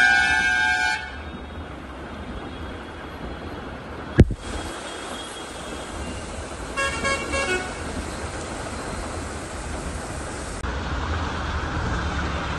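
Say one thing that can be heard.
Heavy rain pours and splashes on a flooded street.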